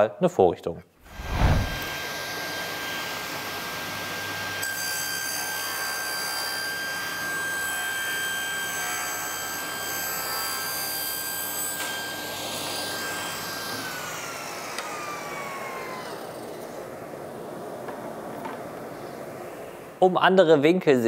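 A table saw whirs steadily, cutting through wood, then slowly winds down.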